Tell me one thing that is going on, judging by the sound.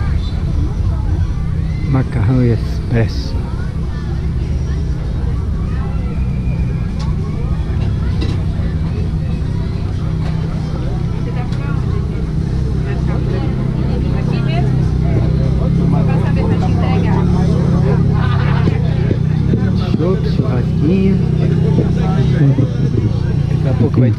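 A crowd of men and women chatters in the background outdoors.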